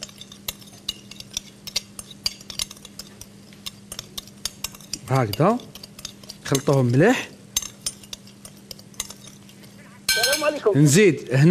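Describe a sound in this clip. A whisk clicks and taps against a glass bowl.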